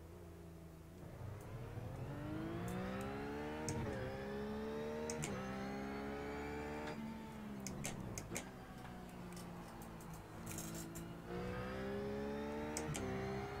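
A race car engine accelerates hard through the gears, its pitch climbing and dropping at each upshift.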